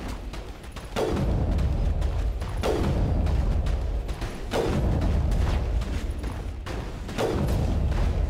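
Sniper rifle shots boom loudly and echo.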